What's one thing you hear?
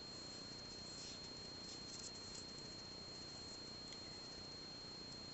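Yarn rustles softly as fingers handle a crochet hook.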